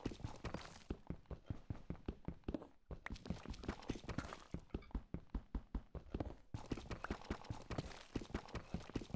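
A pickaxe rapidly chips at stone.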